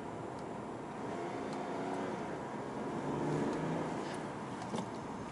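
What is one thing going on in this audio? A car engine hums as the car drives along, heard from inside.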